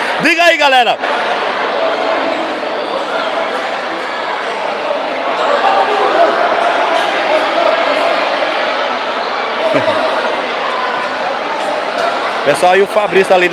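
A crowd murmurs and cheers steadily in an echoing hall.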